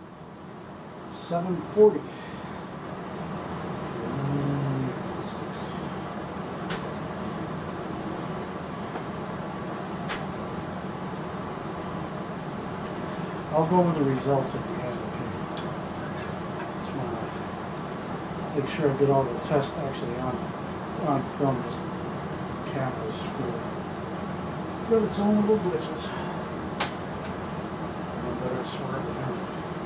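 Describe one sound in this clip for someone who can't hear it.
Metal parts of a rifle click and clack as a man handles it.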